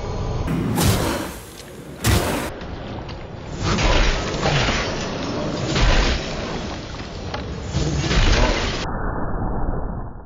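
Blades swing and strike with heavy, booming impacts.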